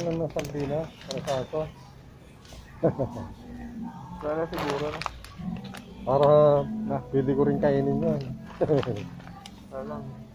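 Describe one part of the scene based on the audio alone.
A plastic bag crinkles and rustles in a hand.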